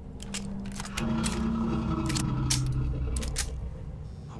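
A heavy metal door rumbles and grinds open.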